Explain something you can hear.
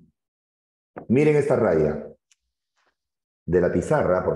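A man speaks clearly into a microphone.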